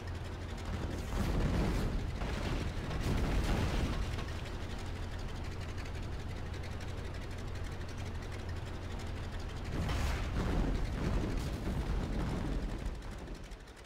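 Bombs explode nearby with deep, rumbling blasts.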